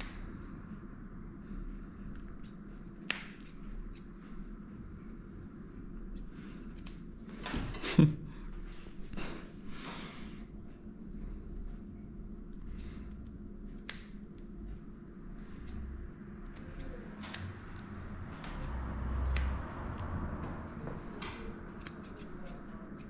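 Scissors snip sharply in short clicks.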